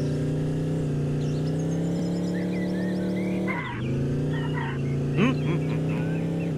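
A car engine hums steadily, dipping briefly as the car lands.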